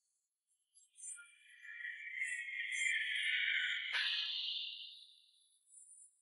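A jet airliner roars loudly overhead and fades.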